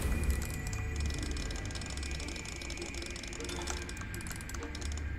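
Small metal gears tick and click as a dial turns.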